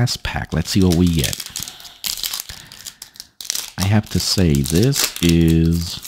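A plastic wrapper crinkles and tears as it is opened.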